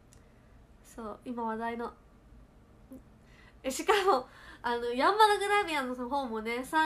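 A young woman speaks cheerfully close to the microphone.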